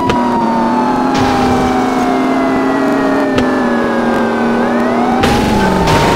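Metal scrapes as a car grinds against another vehicle.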